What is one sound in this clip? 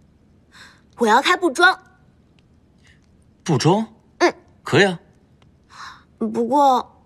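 A young woman speaks cheerfully up close.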